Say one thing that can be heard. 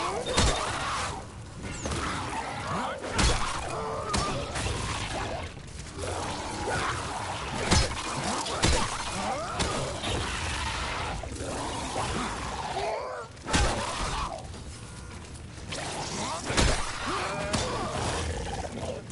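Creatures snarl and shriek.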